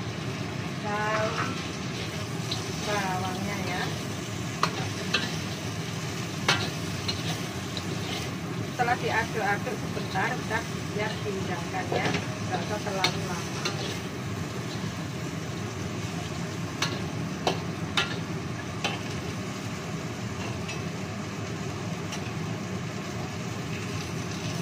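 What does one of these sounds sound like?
Food sizzles and crackles steadily in a hot wok.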